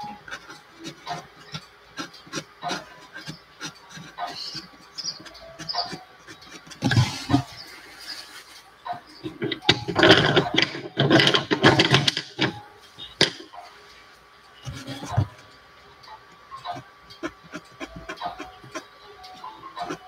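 A pencil scratches and taps on paper.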